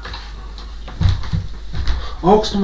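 A man steps down heavily onto a wooden floor.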